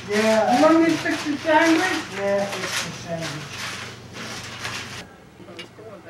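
An elderly woman talks nearby.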